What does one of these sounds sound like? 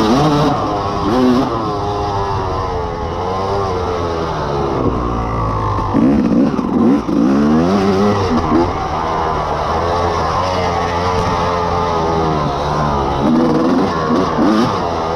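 A dirt bike engine revs and roars up close, rising and falling in pitch.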